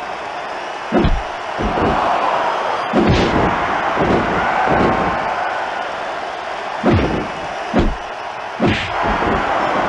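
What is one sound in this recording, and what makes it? Heavy blows land with loud thuds.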